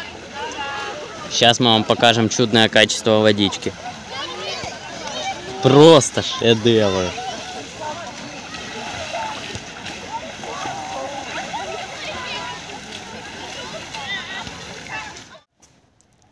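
Swimmers splash and wade through shallow water.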